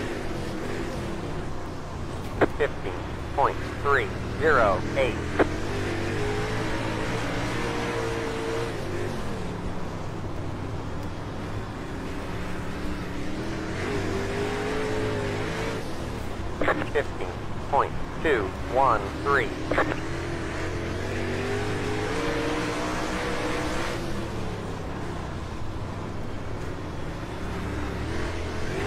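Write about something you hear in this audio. A race car engine roars steadily, rising and falling in pitch as it revs.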